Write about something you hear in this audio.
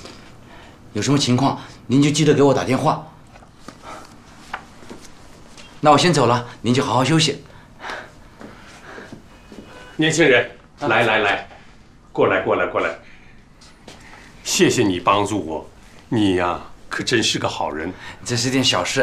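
A young man speaks in a friendly, lively way.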